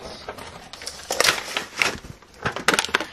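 A plastic wrapper crinkles.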